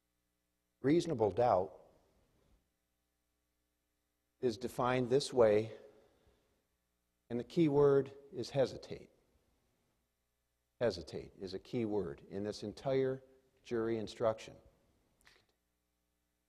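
A man speaks calmly through a microphone in a large hall, pausing between phrases.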